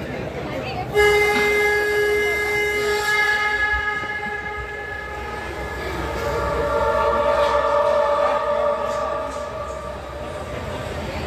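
Music with long held notes plays through loudspeakers.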